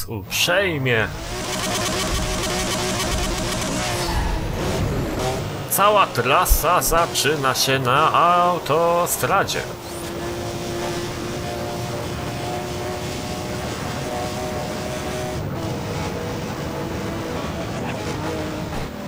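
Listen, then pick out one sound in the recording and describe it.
A race car engine revs hard and roars at high speed.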